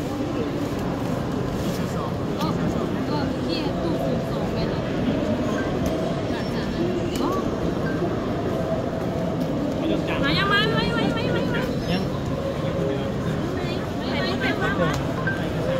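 A busy crowd murmurs in a large echoing hall.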